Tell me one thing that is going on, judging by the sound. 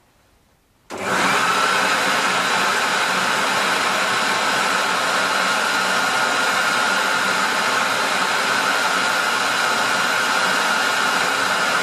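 A blower motor starts suddenly and roars steadily and loudly.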